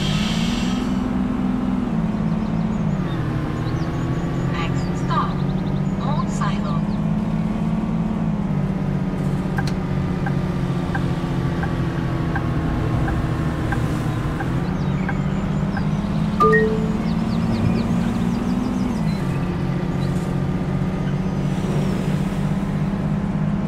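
A bus engine hums steadily, its pitch rising and falling as the bus changes speed.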